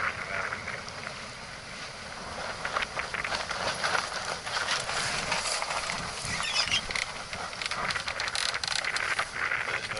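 Water splashes and laps against a moving boat's hull.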